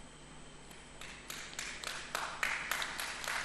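An audience claps in a large hall.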